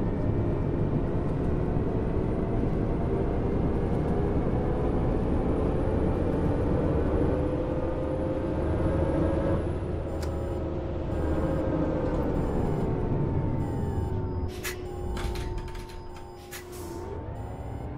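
A diesel city bus drives along, then slows to a stop and idles.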